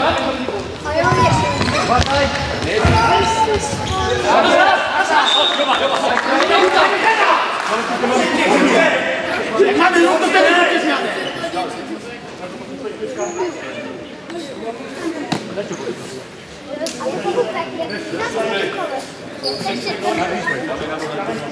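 Shoes squeak on a hard court in a large echoing hall.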